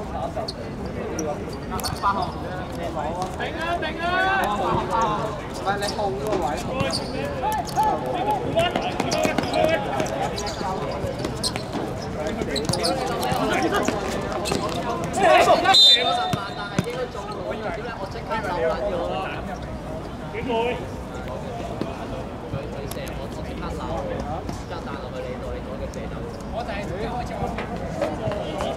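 Several men shout and call out to each other across an open outdoor court.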